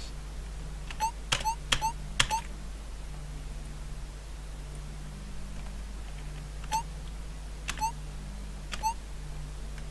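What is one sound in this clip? Short electronic beeps sound as menu options are selected.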